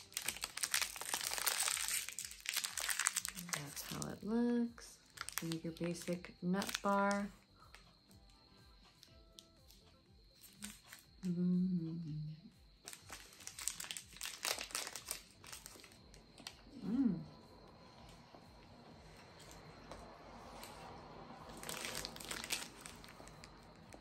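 A plastic wrapper crinkles in a woman's hands.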